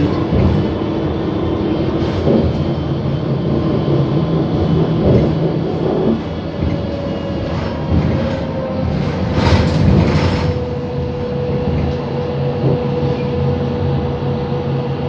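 Tyres roll on the road and the bus rattles.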